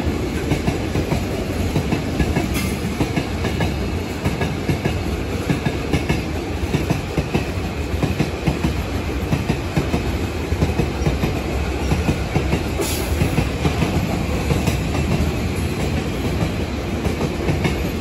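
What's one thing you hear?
A freight train rumbles steadily past on the tracks.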